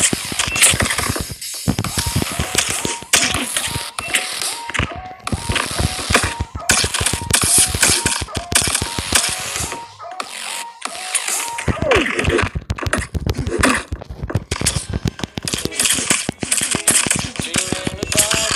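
Game sword strikes land in quick, sharp hits.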